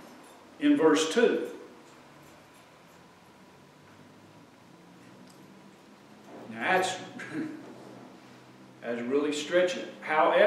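An older man speaks in bursts with long pauses, heard through a microphone.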